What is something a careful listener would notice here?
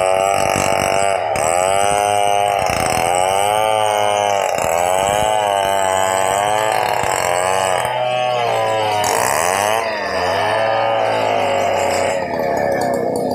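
A chainsaw revs loudly and cuts through wood, its pitch rising and falling.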